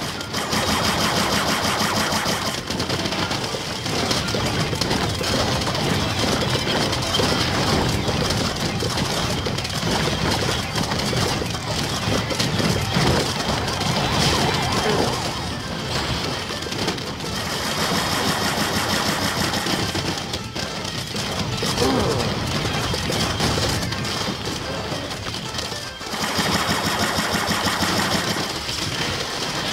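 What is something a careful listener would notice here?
Video game effects of zaps, pops and bursts play constantly.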